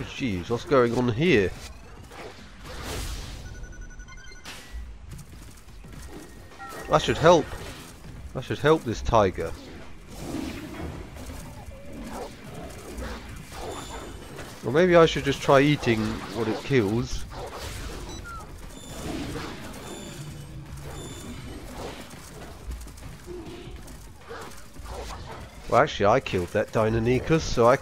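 Tigers growl and roar as they fight.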